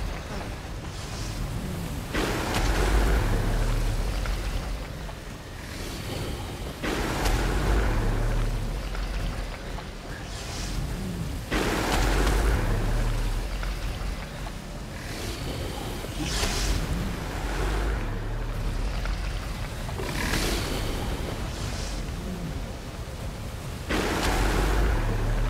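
Wind gusts howl and surge in waves.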